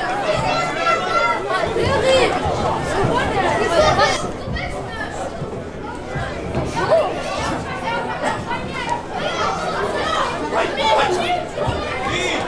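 A crowd of spectators calls out and cheers outdoors.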